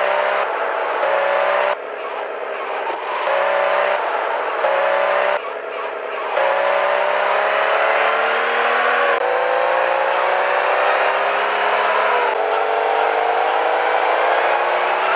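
A car engine revs hard, its pitch rising and dropping as gears shift.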